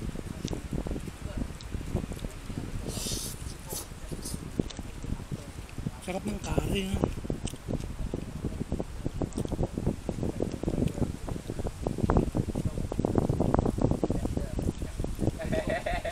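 A man chews and slurps food close by.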